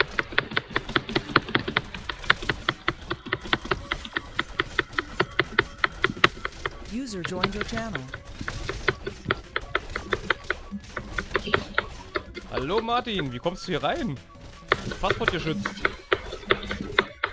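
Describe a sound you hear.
Cartoon weapons strike enemies in rapid, repeated hits.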